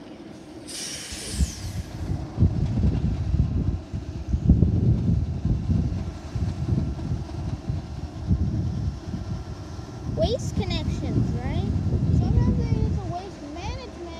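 Wind gusts loudly across the microphone outdoors.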